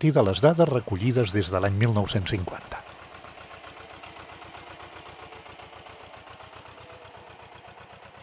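A small tractor engine chugs steadily nearby.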